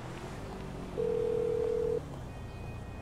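A phone dialling tone beeps once through a small speaker.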